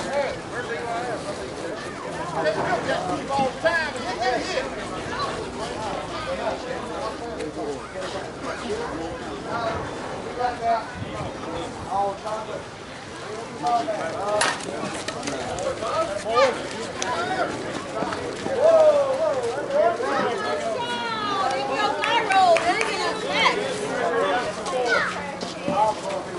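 Several men and women talk and call out nearby, outdoors.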